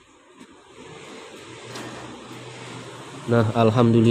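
Banknotes rustle as they slide out of a cash machine.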